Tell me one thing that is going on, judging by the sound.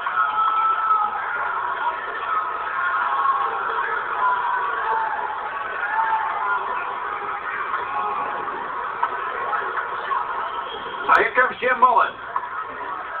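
A crowd murmurs and cheers in a large echoing arena, heard through a television speaker.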